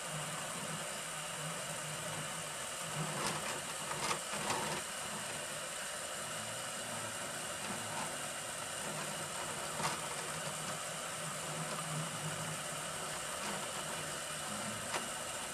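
Stepper motors whine in short, shifting tones.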